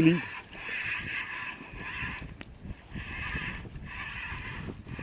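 Water laps gently around a wading angler.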